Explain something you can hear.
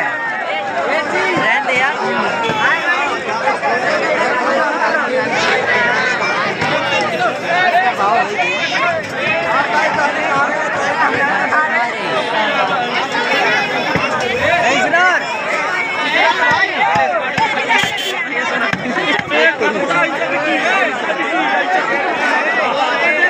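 A large crowd of men talks and shouts loudly all around, outdoors.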